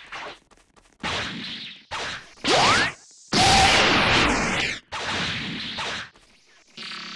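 Energy blasts whoosh and crackle in a game fight.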